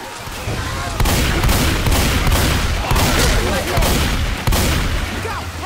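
A shotgun fires rapid blasts.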